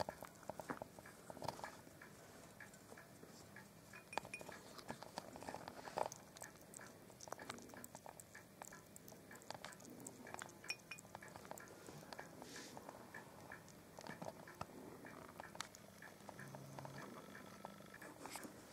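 A hedgehog laps and slurps liquid from a plate up close.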